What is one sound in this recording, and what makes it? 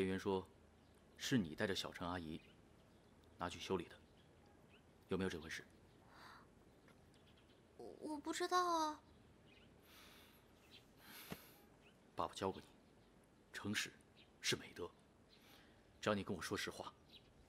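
A man speaks in a low, earnest voice close by.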